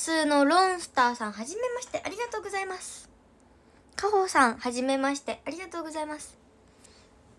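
A young girl talks brightly and close to the microphone.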